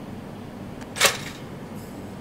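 A toaster pops up with a sharp click.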